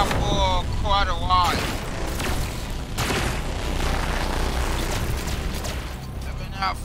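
Energy blasts and explosions boom and crackle.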